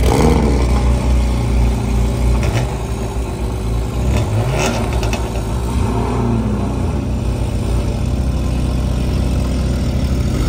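A sports car engine idles with a deep, loud rumble close by.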